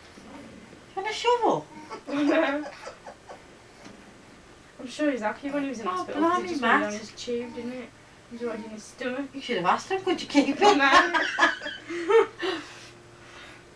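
A young woman talks softly and warmly to a baby close by.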